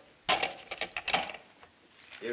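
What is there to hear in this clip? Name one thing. A telephone receiver clatters down onto its cradle.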